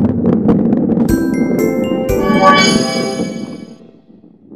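A cheerful jingle plays when a level is finished.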